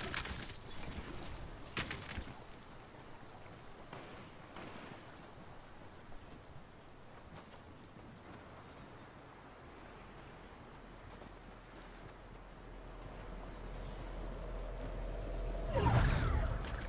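Footsteps run quickly across grass and dirt.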